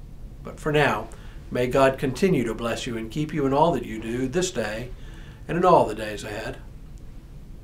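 An older man speaks calmly and closely into a microphone.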